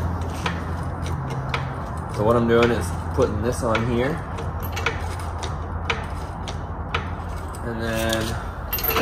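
A hydraulic floor jack clicks and creaks as its handle is pumped up and down.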